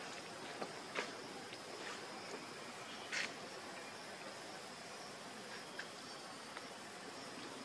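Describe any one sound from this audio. Young monkeys squeak softly while playing.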